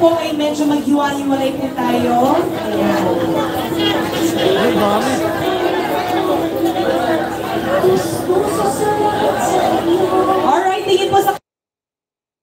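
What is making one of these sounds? A crowd of men and women chatters and cheers nearby.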